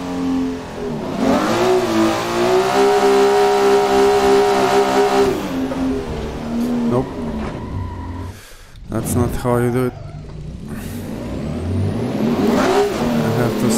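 A racing car engine roars loudly, revving up and dropping with gear changes.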